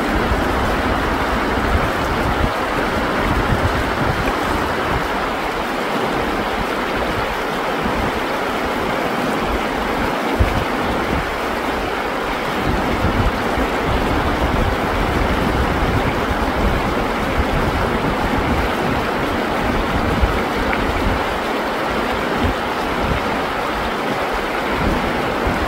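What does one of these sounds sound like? A shallow river rushes loudly over rocks nearby.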